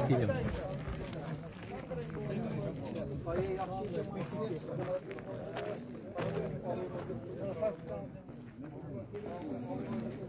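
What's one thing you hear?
Several men talk and chatter nearby outdoors.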